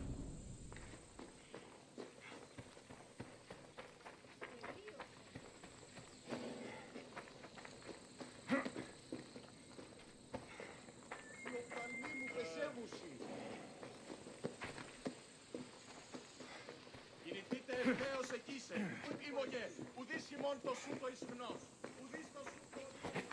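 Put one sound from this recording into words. Footsteps crunch on dry ground at a steady walking pace.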